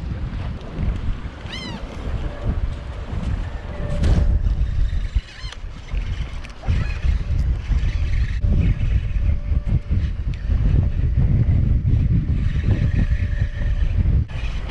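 Wind blusters against the microphone outdoors.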